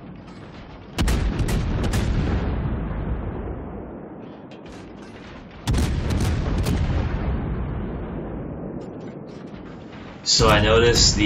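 Heavy ship guns fire in loud booming salvos that rumble and slowly fade.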